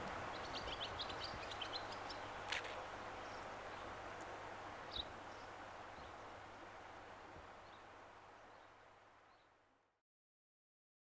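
A shallow river flows steadily over stones, fading away at the end.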